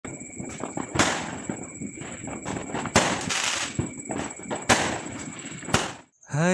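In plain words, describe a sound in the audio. Fireworks burst with loud bangs outdoors.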